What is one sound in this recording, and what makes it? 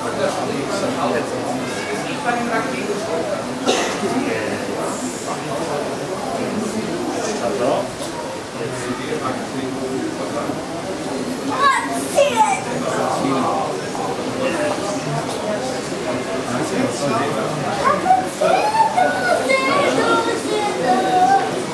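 A crowd of visitors chatters nearby.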